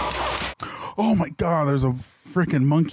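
A young man groans and exclaims loudly into a headset microphone.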